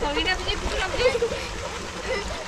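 A young girl talks excitedly nearby in a high voice.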